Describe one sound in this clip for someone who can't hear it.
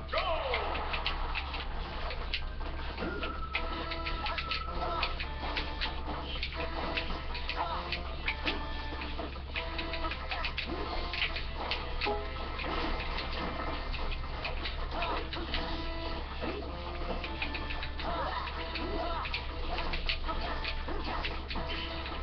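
Upbeat video game music plays through a small speaker.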